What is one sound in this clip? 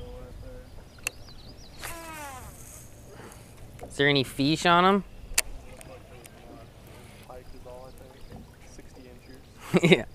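A fishing reel whirs as it is wound in.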